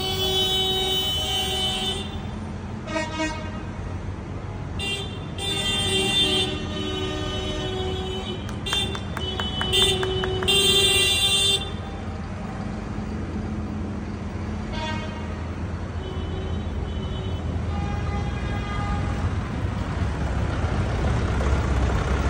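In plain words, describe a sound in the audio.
Tractor engines rumble past at close range.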